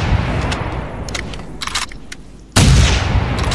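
A shotgun is reloaded with metallic clicks.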